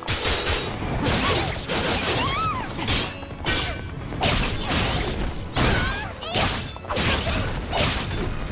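Blades whoosh and clash in quick, sharp bursts.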